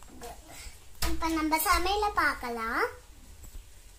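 A young girl speaks up close in a high, lively voice.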